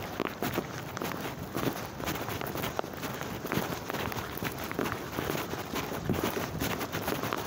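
Clothing rustles against a bag in motion.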